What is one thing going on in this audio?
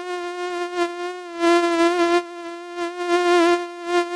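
A swarm of mosquitoes buzzes with a steady high whine.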